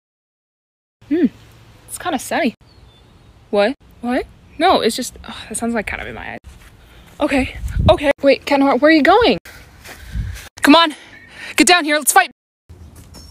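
A young woman talks with animation close to a phone microphone, outdoors.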